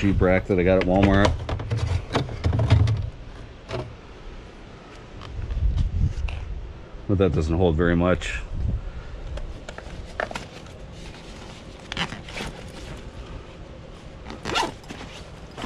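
A plastic bin rattles and knocks as it is handled.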